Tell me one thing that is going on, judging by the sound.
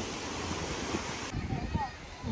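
Small waves lap and splash against a rocky shore.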